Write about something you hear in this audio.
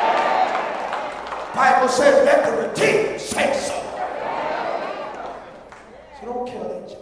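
A crowd of men and women sings together in a large echoing hall.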